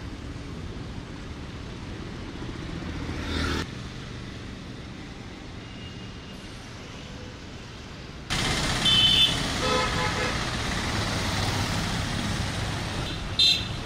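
Traffic hums steadily along a busy road.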